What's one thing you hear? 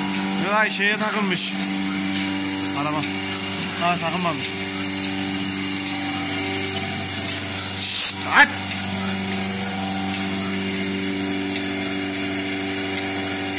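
A milking machine hums steadily.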